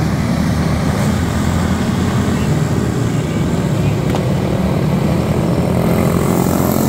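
Small racing engines buzz and drone loudly.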